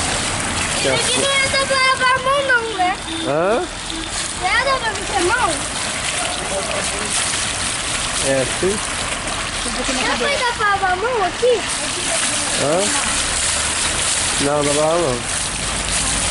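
A young boy talks with animation nearby.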